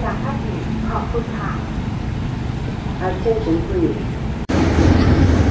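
A diesel locomotive idles with a low rumble.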